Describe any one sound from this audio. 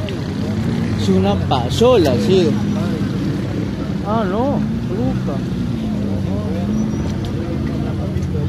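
Men talk loudly and excitedly close by.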